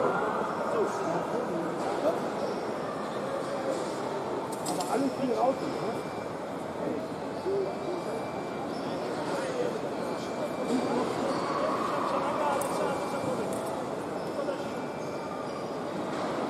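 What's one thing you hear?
Many people murmur and chatter in a large echoing hall.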